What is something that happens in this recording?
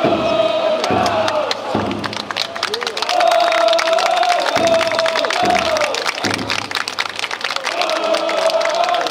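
Wooden clappers click rapidly.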